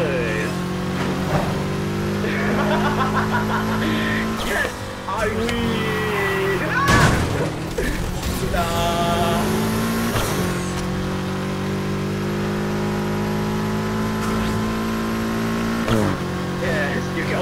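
A car engine roars steadily at high speed, shifting gears now and then.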